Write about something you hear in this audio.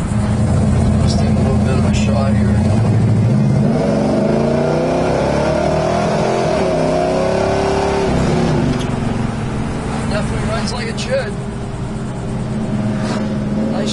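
A car engine rumbles loudly and revs up and down as the car drives.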